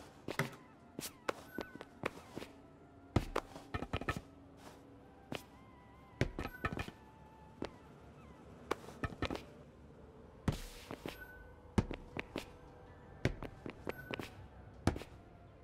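Quick footsteps and landing thuds sound from a video game character running and jumping.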